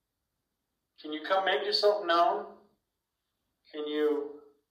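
A man speaks calmly into a handheld radio close by.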